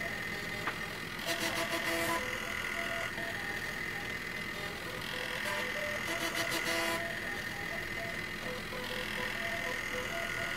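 Stacked disc drives whir steadily.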